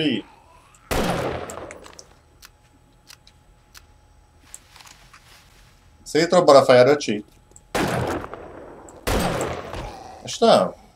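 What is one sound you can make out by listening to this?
A rifle fires sharp, echoing shots.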